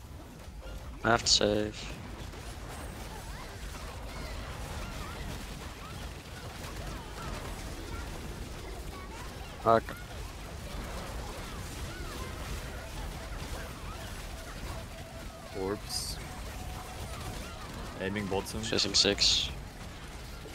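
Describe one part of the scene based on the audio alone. Magic blasts burst loudly now and then.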